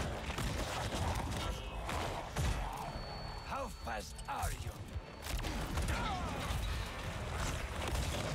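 Heavy blows thud in a fight.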